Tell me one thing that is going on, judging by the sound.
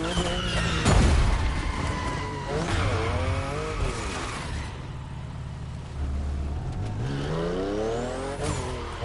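A car engine revs up and down while the car slows and drifts.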